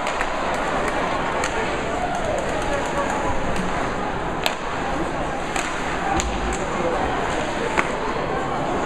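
Sticks slap pucks with sharp cracks that echo in a large rink.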